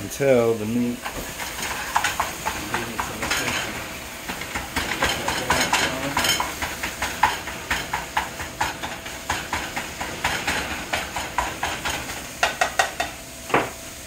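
Ground meat sizzles in a hot frying pan.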